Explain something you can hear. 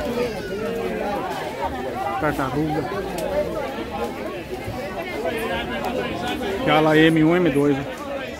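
A crowd of men and women chatters all around.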